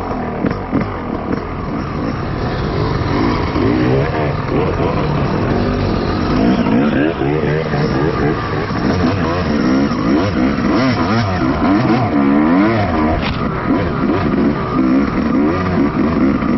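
Other dirt bike engines rev nearby.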